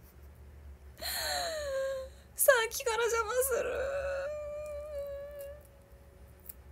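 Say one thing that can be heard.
A young woman speaks and laughs brightly, close to a microphone.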